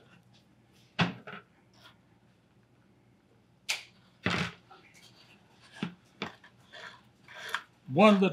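Paper rustles and taps on a table.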